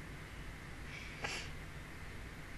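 A young woman giggles quietly behind her hand.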